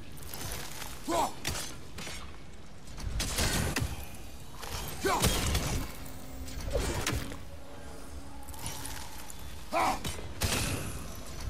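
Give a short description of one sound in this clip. An axe strikes a glowing rock with heavy crunching blows.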